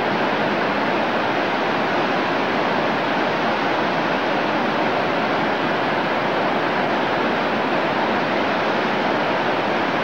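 A river rushes loudly over rocks in a steady roar.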